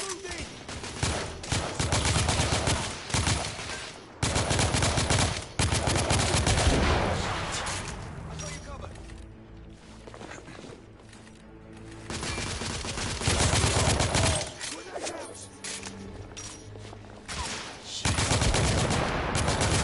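Rapid rifle gunfire crackles in loud bursts.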